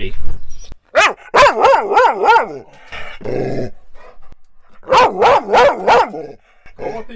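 A dog howls loudly in long rising and falling wails.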